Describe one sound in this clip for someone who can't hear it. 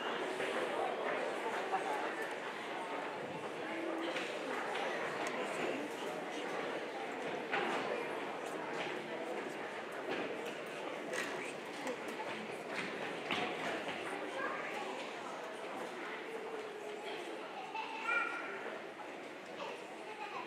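Footsteps thud on wooden stage risers.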